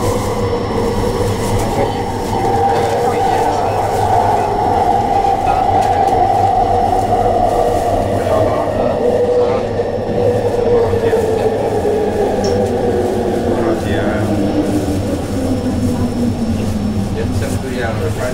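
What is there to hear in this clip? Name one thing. An electric train's motor whines and falls in pitch as the train slows down.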